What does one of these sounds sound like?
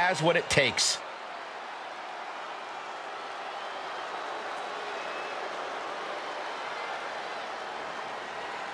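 A large crowd roars and cheers steadily in a big echoing arena.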